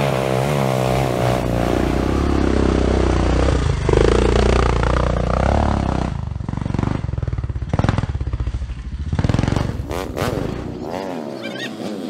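A dirt bike engine roars and revs loudly nearby.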